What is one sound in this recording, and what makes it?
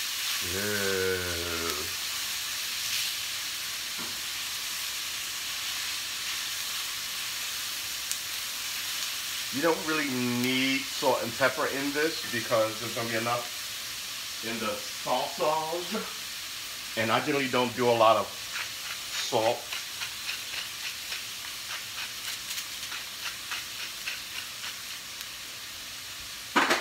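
Onions sizzle steadily in a hot pan.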